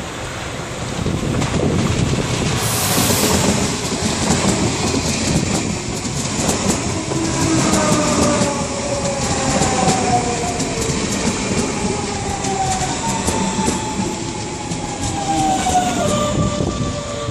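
An electric train approaches and rushes past close by with a loud roar.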